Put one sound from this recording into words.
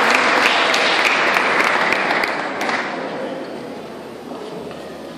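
A choir of men and women sings together in a large echoing hall, fading toward the end.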